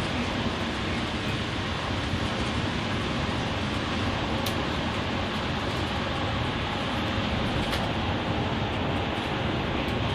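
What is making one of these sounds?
Tyres roar steadily on the road surface.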